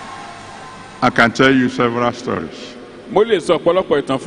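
A man speaks with animation into a microphone over a loudspeaker, in a big echoing hall.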